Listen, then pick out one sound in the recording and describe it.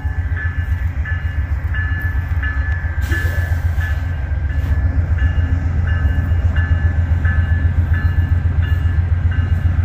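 Train wheels clack rhythmically over the rail joints.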